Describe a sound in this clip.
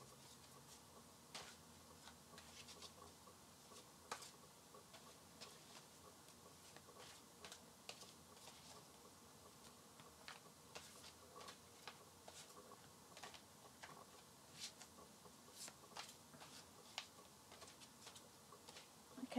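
Cards rustle and snap as they are shuffled close by.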